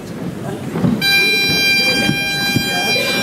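Bagpipes start up and play a steady, reedy drone in a large hall.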